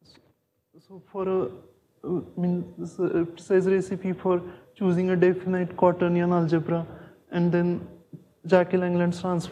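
A man speaks with animation through a microphone in an echoing room.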